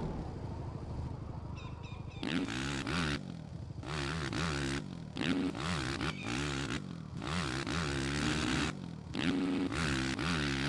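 A motorcycle engine revs up and down again and again.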